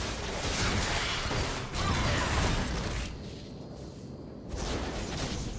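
Game spells and attacks clash and burst in a hectic fight.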